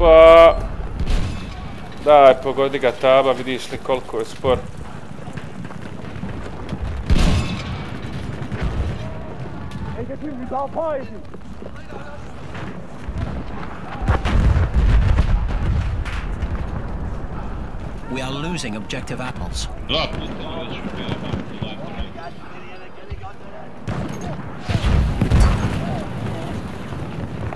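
Gunfire cracks in bursts.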